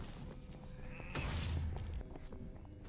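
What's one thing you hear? A sword swishes and strikes with a metallic hit.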